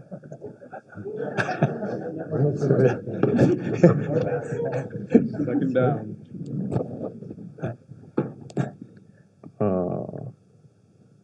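A second man answers calmly.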